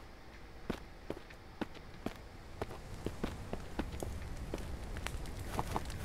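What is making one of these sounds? Footsteps crunch steadily over rough ground.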